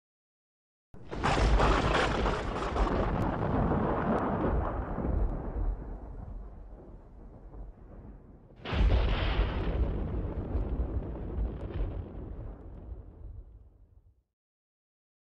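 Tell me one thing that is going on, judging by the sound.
Thunder cracks loudly and rolls away in long rumbles.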